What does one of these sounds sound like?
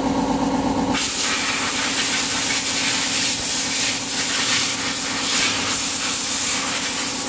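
Compressed air hisses loudly from an air hose.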